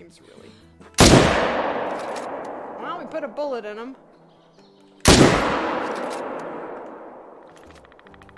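Rifle shots boom and echo away.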